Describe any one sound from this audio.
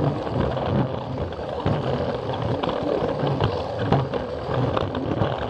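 Plastic wheels clatter over track joints.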